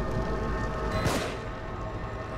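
A single gunshot cracks sharply.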